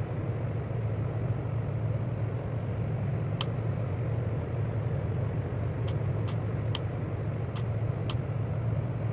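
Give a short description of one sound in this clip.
Jet engines hum steadily, heard from inside a cockpit.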